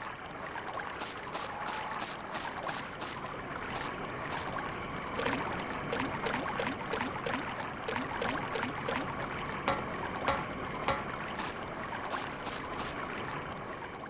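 Footsteps tread on a jungle floor.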